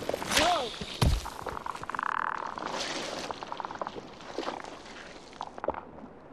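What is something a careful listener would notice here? A small game character scrambles and clambers up a pillar with quick scraping steps.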